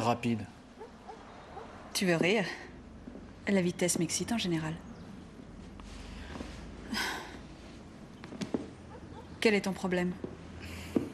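A young woman speaks softly and calmly up close.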